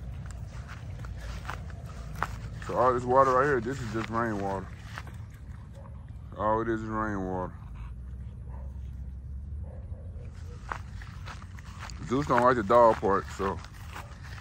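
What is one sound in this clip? Dogs splash through shallow water.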